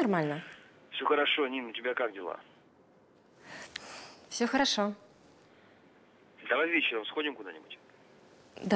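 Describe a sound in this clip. A voice answers faintly through a phone.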